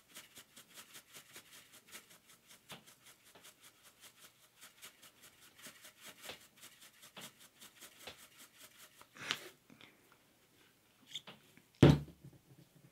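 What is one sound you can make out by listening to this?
Glitter patters softly onto a soft surface.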